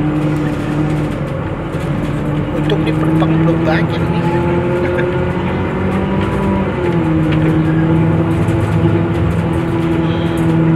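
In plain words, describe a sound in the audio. A bus engine hums steadily while the bus drives.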